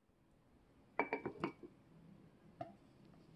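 A wooden spoon knocks and scrapes inside a metal pot.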